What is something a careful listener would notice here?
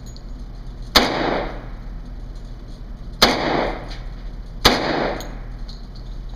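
Gunshots bang loudly one at a time and echo in a hard-walled room.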